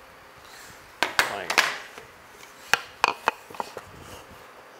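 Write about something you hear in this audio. Tools and pieces of wood knock and clatter on a workbench.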